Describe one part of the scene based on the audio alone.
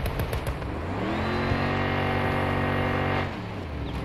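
An armored car's engine drones as it drives off-road.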